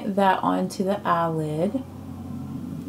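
A woman speaks calmly, close to a microphone.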